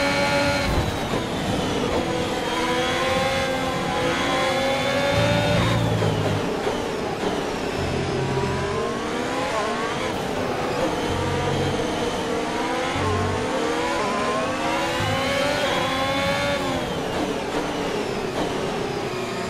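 A racing car engine screams, rising and falling in pitch as it shifts gears.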